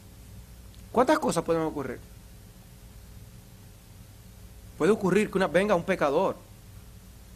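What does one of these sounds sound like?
A middle-aged man speaks calmly into a microphone in a room with a slight echo.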